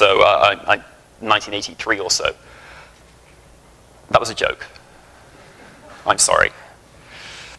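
A man speaks through a microphone in a large hall, in short bursts with pauses.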